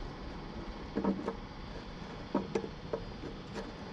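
Plastic parts click and knock softly as they are handled.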